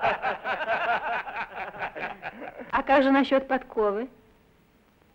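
A group of men laugh loudly together.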